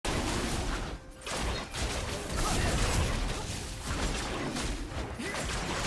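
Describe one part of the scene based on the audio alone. Game characters clash with whooshing spells and hits.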